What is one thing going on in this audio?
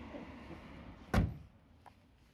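A car bonnet slams shut.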